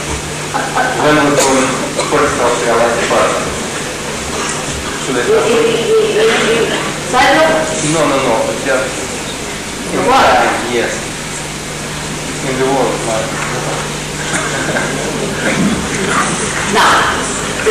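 An older woman speaks calmly into a microphone, heard through a loudspeaker.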